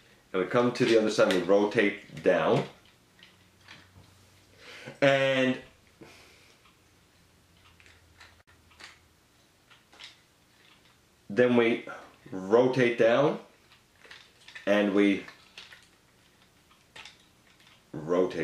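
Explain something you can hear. Small plastic toy parts click and rattle as they are moved.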